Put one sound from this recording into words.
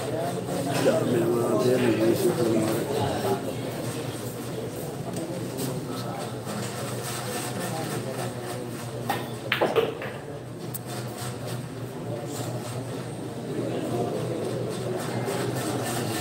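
A crowd of young men chatters nearby.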